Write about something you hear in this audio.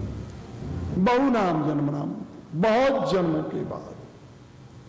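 An elderly man chants slowly in a sung voice, close to a microphone.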